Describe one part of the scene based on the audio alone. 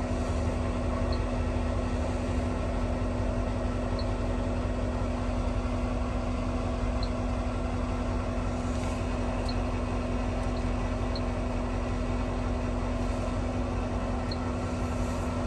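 Buttons on a control panel click softly.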